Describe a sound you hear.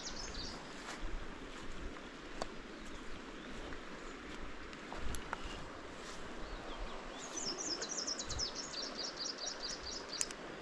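A fishing reel clicks as its handle is turned.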